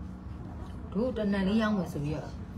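A woman speaks briefly, close to a microphone.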